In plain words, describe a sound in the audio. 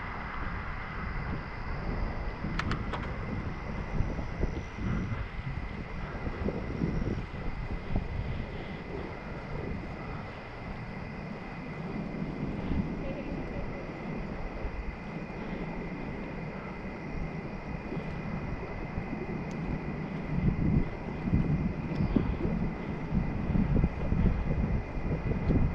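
Wind rushes over a microphone on a moving bicycle.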